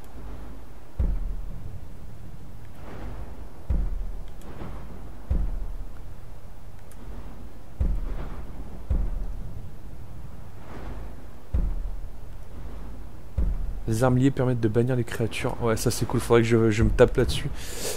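Soft, deep whooshes sound now and then as a game menu moves.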